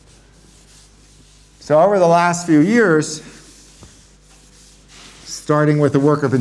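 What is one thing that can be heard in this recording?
Chalk scratches on a board.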